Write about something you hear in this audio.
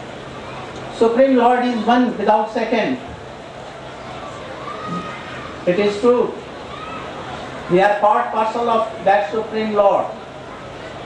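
An elderly man speaks slowly and with emphasis through a microphone, in pauses.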